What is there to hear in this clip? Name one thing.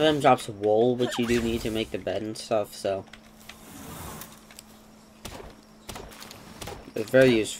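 An axe chops into a tree trunk with dull knocks.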